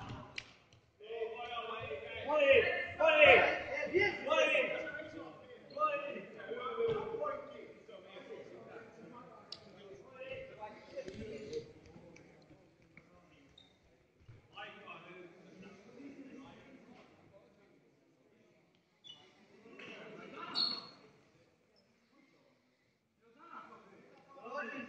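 Young male players talk and call out to each other in an echoing sports hall.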